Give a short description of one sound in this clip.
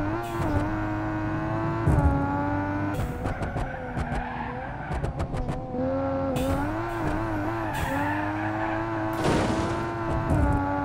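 A car engine roars steadily, shifting gears up and down.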